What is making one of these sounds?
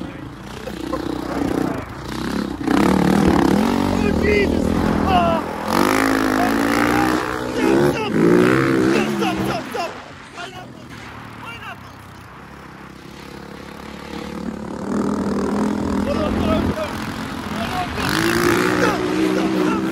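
A motorbike engine roars and revs up and down.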